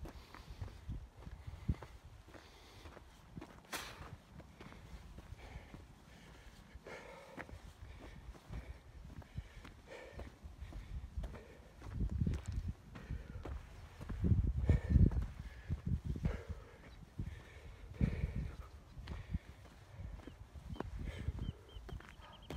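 Footsteps crunch on a gravel trail.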